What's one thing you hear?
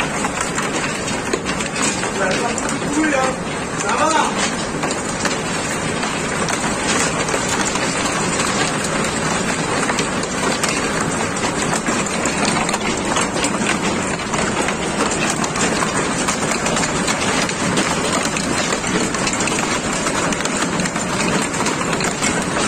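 Hailstones clatter against a window pane.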